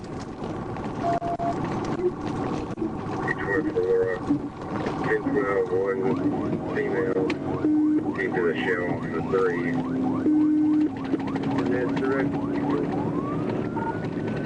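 A siren wails and warbles close by.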